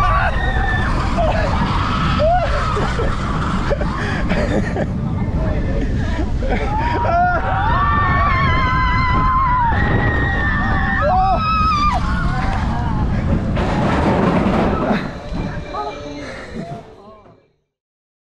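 Wind rushes loudly past on a fast ride.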